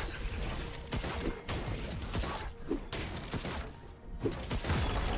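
Game spell effects and weapon hits clash and burst rapidly.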